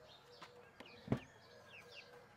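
A heavy bowl is set down on a wooden table with a sharp knock.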